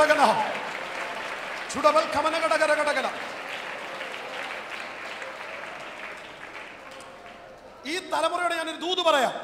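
A man speaks with animation through a microphone in a large echoing room.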